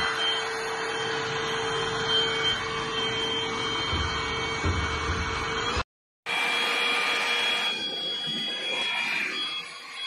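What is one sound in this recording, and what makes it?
A cordless vacuum cleaner whirs with a steady high hum.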